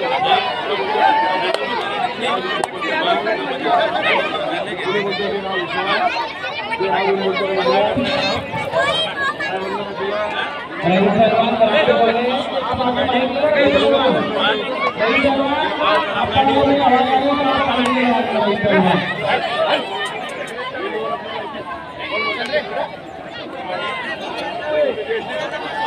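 A man commentates loudly through a loudspeaker.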